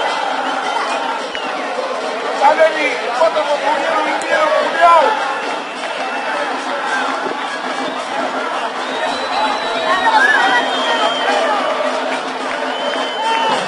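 A large crowd cheers and chants in an open stadium.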